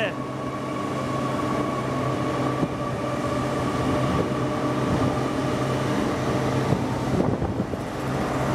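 A train's engine hums steadily as it pulls away close by.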